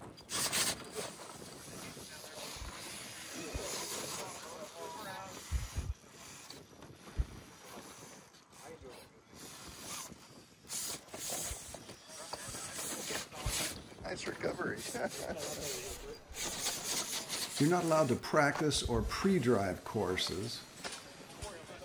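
A small electric motor whines as a toy crawler climbs over rock.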